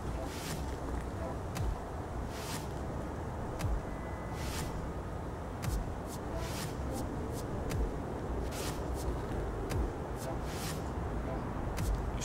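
A young boy reads aloud quietly, close by.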